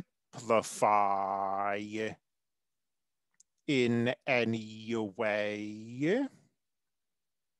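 A man speaks calmly into a headset microphone.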